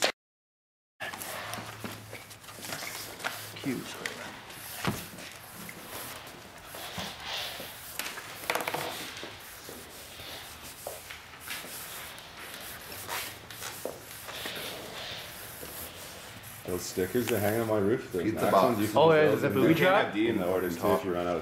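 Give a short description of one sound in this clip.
A felt marker squeaks and scratches across paper in quick strokes.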